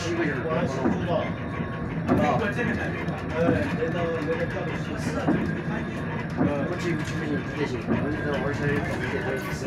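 A vehicle rumbles steadily as it drives along a road.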